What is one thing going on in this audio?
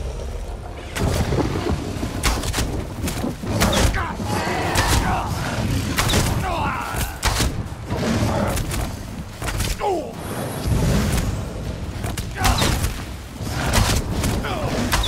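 A bow twangs as arrows are shot.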